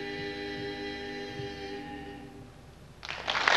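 A group of men sings a sustained chord in close harmony, fading out.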